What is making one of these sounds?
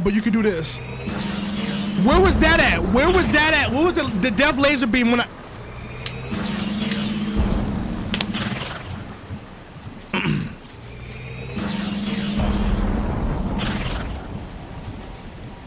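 A laser beam hums and whooshes in loud bursts.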